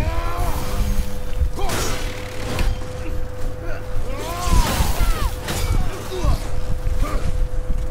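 An axe strikes enemies with sharp, heavy hits.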